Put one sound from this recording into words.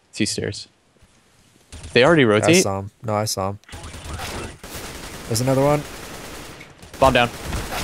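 Rifle shots fire in short bursts.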